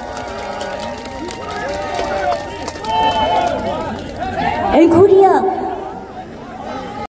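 A young woman sings into a microphone through loudspeakers.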